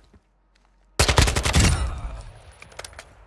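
Rapid rifle shots ring out loudly, with a short echoing tail.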